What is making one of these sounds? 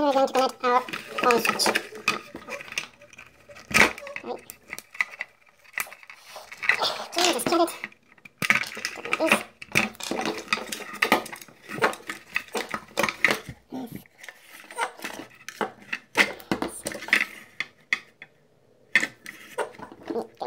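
Plastic parts knock and rattle as they are handled close by.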